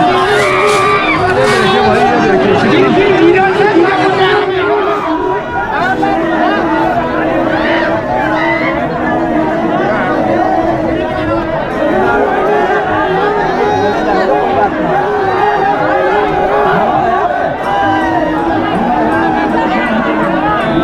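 A large crowd of men and women shouts and chatters loudly close by.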